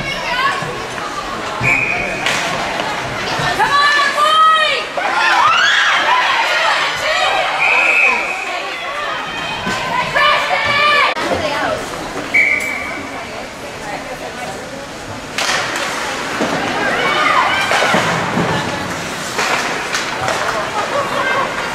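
A crowd of spectators cheers and shouts in an echoing arena.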